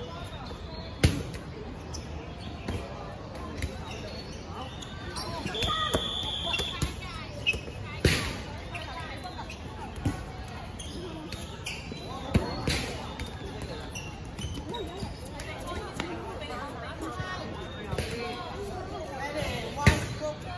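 A ball bounces and thuds on a hard outdoor court.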